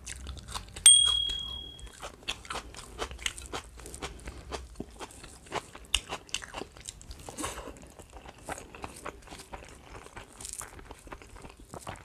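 A woman chews and smacks her lips close to a microphone.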